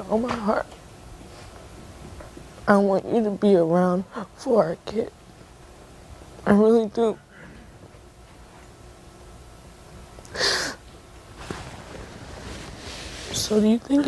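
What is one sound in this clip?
A young woman speaks in a shaky, tearful voice close to a microphone.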